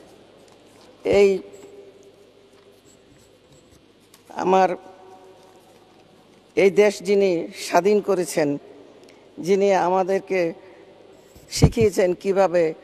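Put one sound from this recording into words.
A woman speaks into a microphone in a measured, formal tone, with pauses.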